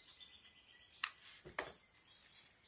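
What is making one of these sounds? A glue gun clicks.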